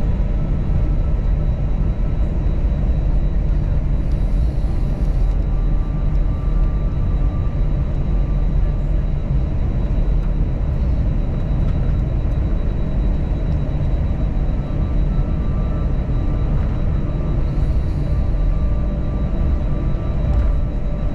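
A jet's engines hum steadily from inside the cabin.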